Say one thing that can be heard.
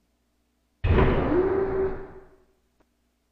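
A heavy metal door slides open with a loud whoosh.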